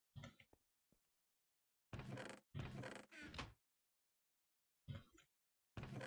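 A wooden chest creaks open and then thuds shut.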